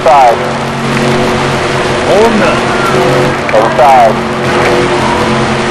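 Race car engines drone steadily at high speed.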